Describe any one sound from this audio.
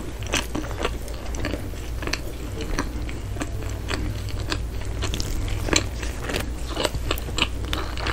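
Rubber gloves squeak and crinkle as fingers move.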